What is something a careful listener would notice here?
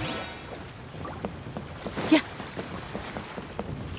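Quick footsteps run across wooden boards.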